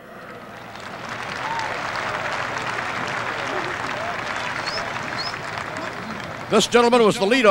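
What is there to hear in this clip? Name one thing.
A large crowd cheers and murmurs outdoors.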